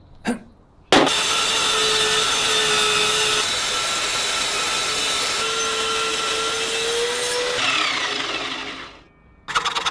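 A table saw whines loudly as its blade cuts through wood.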